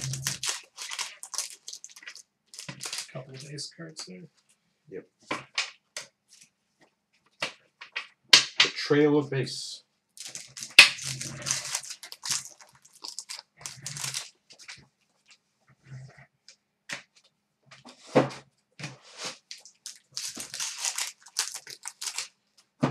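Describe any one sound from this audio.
Playing cards rustle and riffle as they are shuffled.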